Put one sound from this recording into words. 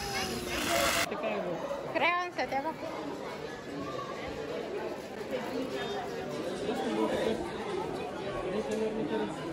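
Children chatter and talk indoors.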